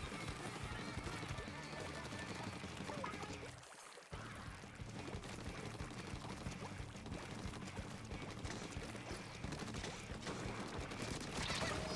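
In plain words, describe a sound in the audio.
Ink splatters and squishes as a character swims and shoots.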